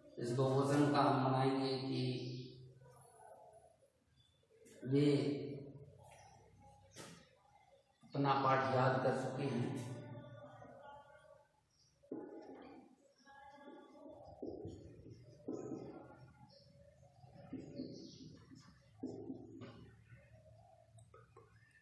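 An elderly man speaks calmly, like a teacher explaining, close by.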